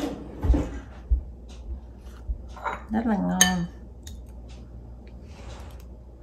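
A spoon scrapes and taps in a tub of yogurt.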